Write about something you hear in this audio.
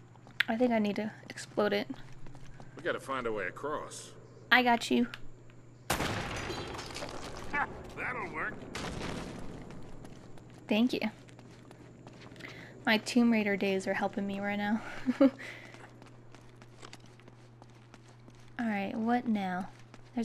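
A young woman talks calmly into a close microphone, in short bursts.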